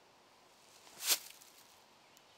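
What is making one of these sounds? A flying disc thuds onto the ground.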